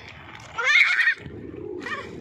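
A toddler squeals excitedly close by.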